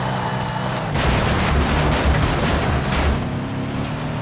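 A car smashes through a wooden fence with a loud crash.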